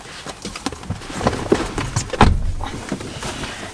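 A man settles into a car seat with rustling and creaking.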